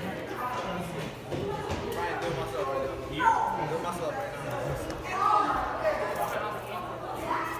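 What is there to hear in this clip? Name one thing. Feet shuffle and thump on a mat.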